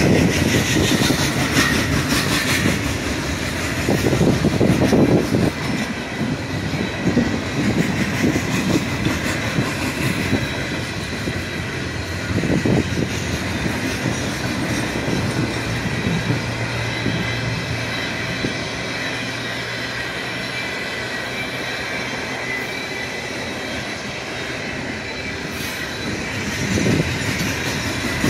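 A freight train rolls past close by, its steel wheels clattering over rail joints.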